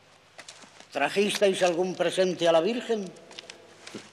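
A man speaks loudly and with emphasis nearby.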